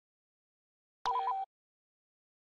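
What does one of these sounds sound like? A menu beeps once.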